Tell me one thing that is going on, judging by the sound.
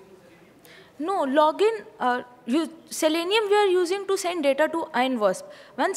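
A second young woman speaks with animation, loud and close through a microphone.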